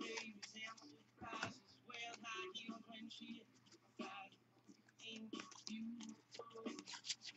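Trading cards rustle and flick as hands shuffle through a pack.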